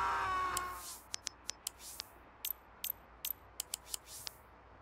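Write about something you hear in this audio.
Menu clicks tick in quick succession.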